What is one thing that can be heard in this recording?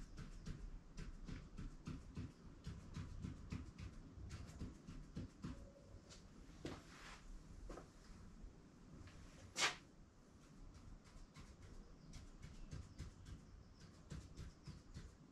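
A pen taps and scratches quickly on a hard surface.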